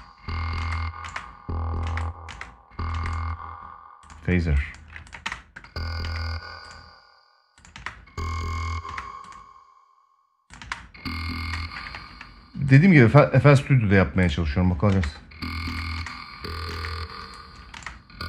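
A synthesizer plays short, repeated buzzing notes with pauses between them.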